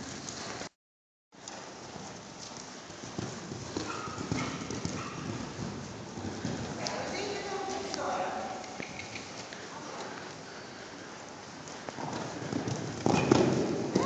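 Horse hooves thud on soft sand in a large echoing hall.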